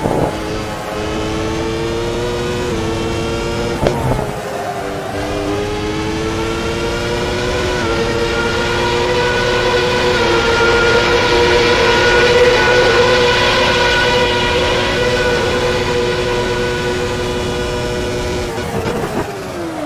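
A racing car engine roars at high revs, shifting gears and rising in pitch down a straight.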